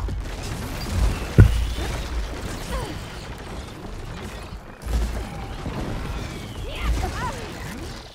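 Explosions boom and thud.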